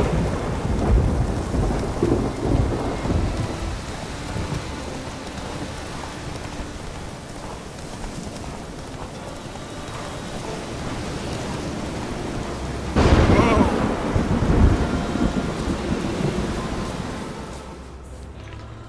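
A horse gallops, its hooves thudding on soft ground.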